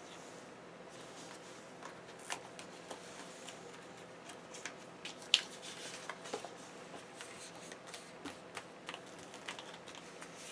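Paper pages rustle and flip close by.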